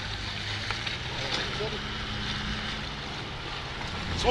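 Car tyres squelch through thick mud.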